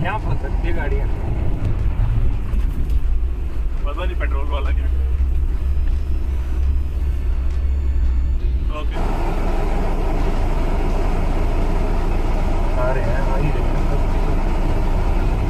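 A vehicle engine rumbles low and steady from inside the cab.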